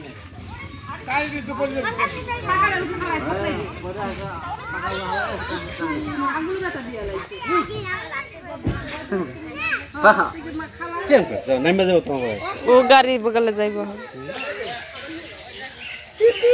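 Several people talk with animation close by, outdoors.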